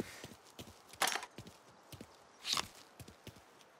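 Gunshots crack loudly.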